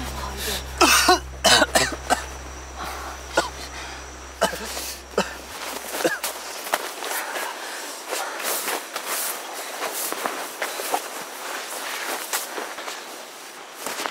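A young man groans in pain close by.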